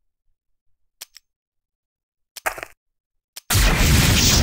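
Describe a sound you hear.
Short clicks sound a few times.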